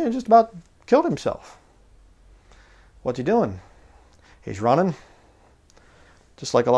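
A man speaks calmly into a clip-on microphone, close by, in short phrases with pauses.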